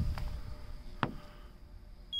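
A small probe taps once against a car's metal body.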